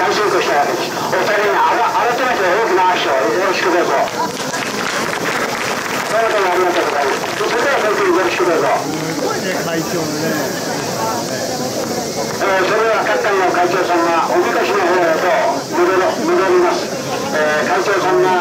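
An elderly man speaks through a microphone over a loudspeaker, outdoors.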